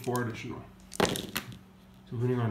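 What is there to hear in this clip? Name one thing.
Dice tumble and clatter onto a soft mat.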